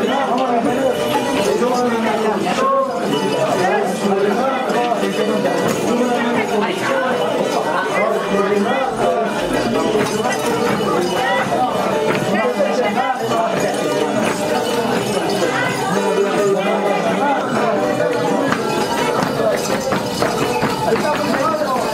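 A group of men sing together loudly, close by.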